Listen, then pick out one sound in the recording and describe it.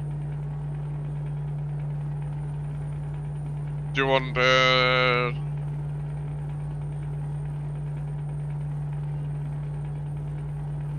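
A truck engine drones steadily at cruising speed.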